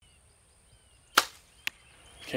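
A bowstring snaps as an arrow is released.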